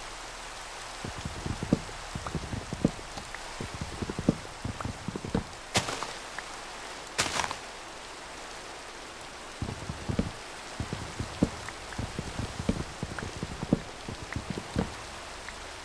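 An axe chops wood with quick, hollow knocks.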